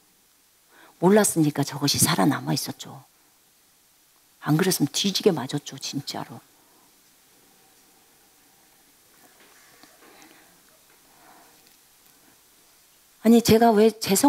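A middle-aged woman speaks calmly and clearly through a close microphone, in short phrases with pauses.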